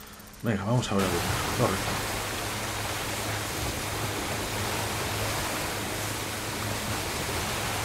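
Rain pours down hard.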